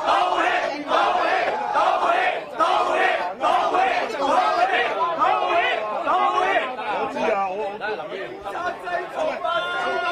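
A middle-aged man argues loudly and angrily up close.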